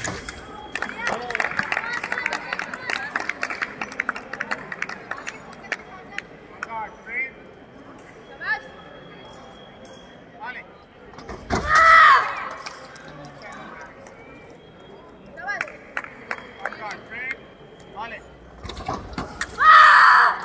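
Blades clash and click in a large echoing hall.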